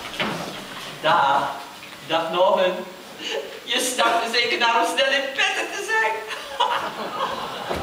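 A man speaks loudly and with animation from a stage, heard from a distance in a large hall.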